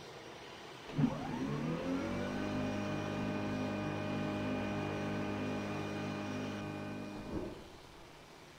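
A jet engine whines up to a steady roar, then cuts off.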